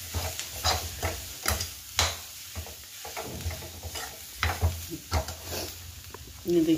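A metal spoon scrapes and clanks against a pan.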